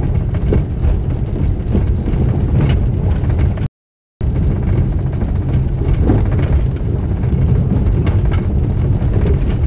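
Tyres crunch and rattle over a gravel road.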